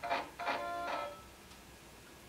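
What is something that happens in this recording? Video game sound effects chime from a television speaker.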